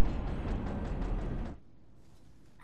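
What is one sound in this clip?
A train rumbles through a tunnel.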